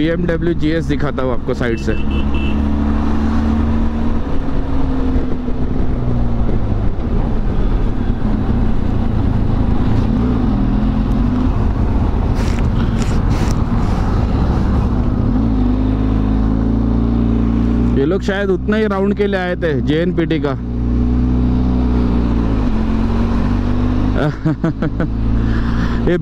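A motorcycle engine hums steadily, rising and falling as it speeds up and slows down.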